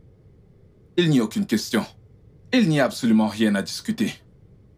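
A man speaks close by in a deep, serious voice.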